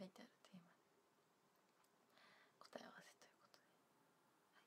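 A young woman speaks softly and close by, as into a phone microphone.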